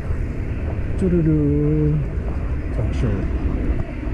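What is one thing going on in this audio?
Young men talk briefly in passing nearby.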